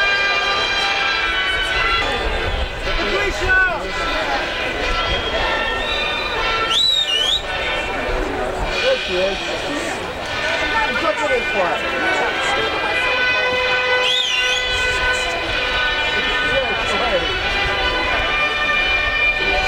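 A large crowd of men and women chatters and calls out all around, outdoors.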